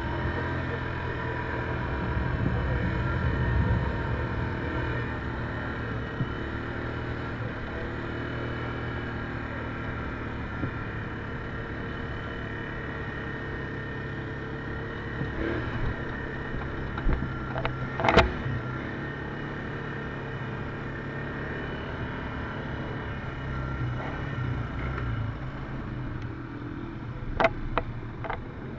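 A quad bike engine hums and revs up close.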